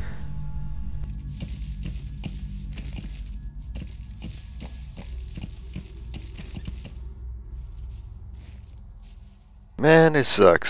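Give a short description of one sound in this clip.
A horse's hooves thud steadily on the ground at a trot.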